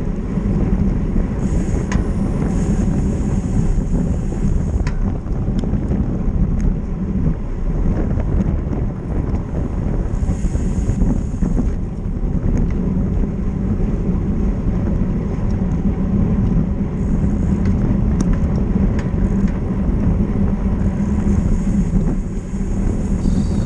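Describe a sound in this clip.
Wind rushes loudly and steadily as a bicycle speeds along.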